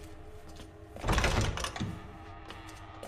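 A heavy door swings open.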